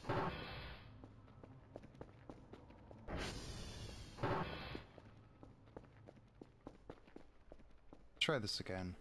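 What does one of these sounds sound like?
Footsteps tap steadily on a hard floor and metal stairs.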